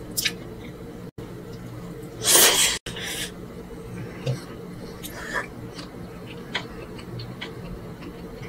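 A woman chews food wetly and smacks her lips close to a microphone.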